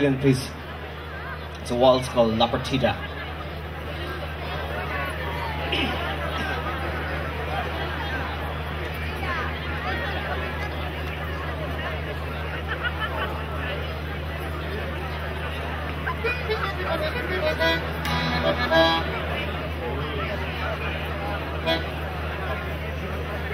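An accordion plays a lively tune.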